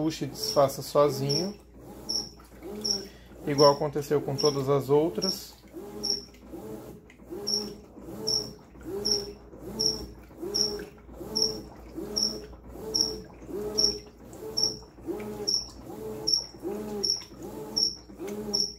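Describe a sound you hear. Water sloshes and swishes around laundry in a washing machine.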